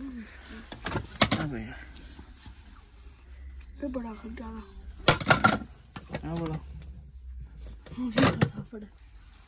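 Metal casters clack and rattle as they are handled.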